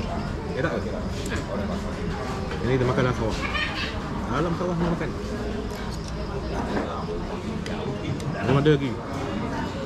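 Cutlery clinks against plates.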